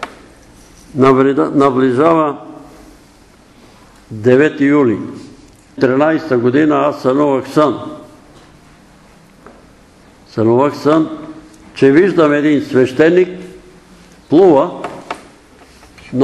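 An elderly man speaks with animation through a microphone in an echoing room.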